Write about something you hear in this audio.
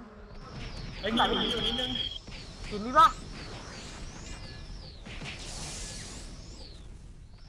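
Magic spells burst and whoosh in quick succession.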